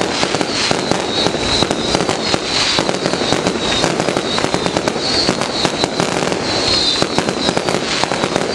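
Fireworks pop and crackle rapidly nearby.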